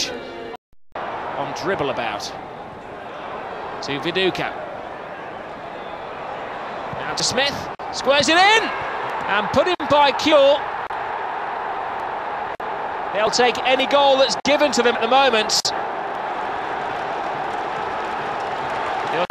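A large stadium crowd murmurs and then roars loudly.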